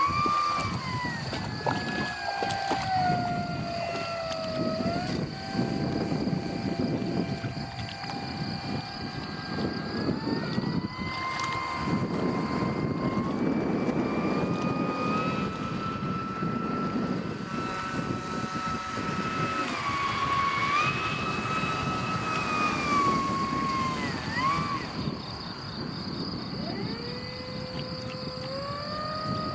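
A small model plane's electric motor whines steadily, rising and falling in pitch.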